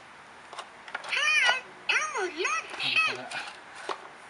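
An electronic toy plays a short high-pitched tune.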